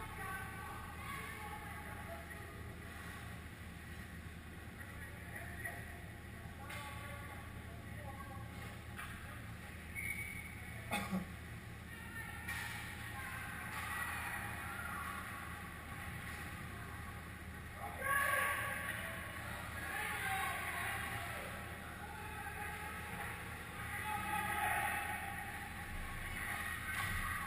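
Skates scrape on ice in a large echoing rink.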